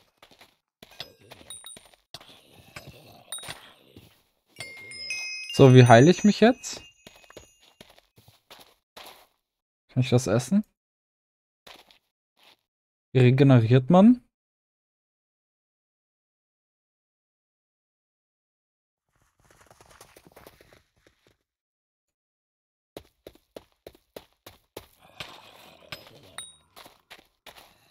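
Sharp game hit sounds strike a zombie in quick succession.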